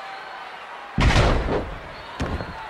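A heavy body crashes hard onto a wrestling mat with a loud thud.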